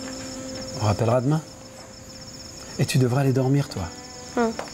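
A middle-aged man speaks calmly and quietly close by.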